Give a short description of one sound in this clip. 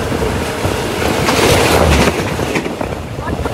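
A passing train roars by close alongside.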